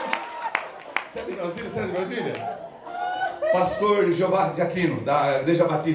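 A small audience laughs heartily.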